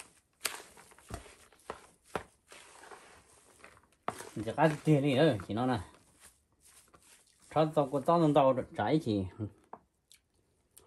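Hands squish and knead raw ground meat in a bowl.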